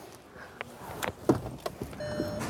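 A car door thumps shut nearby.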